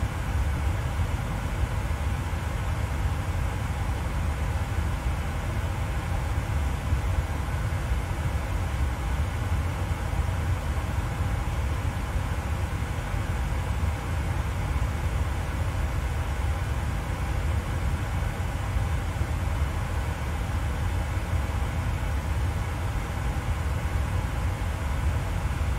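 A jet airliner's engines and rushing air drone steadily in the cockpit.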